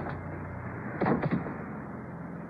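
A body thuds onto a floor.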